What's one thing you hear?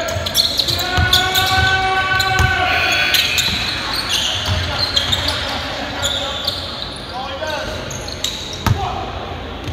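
A basketball bounces with dull thumps in an echoing hall.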